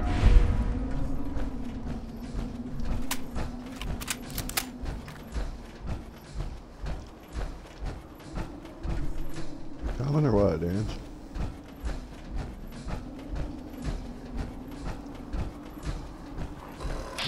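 Heavy metal footsteps clank at a steady pace.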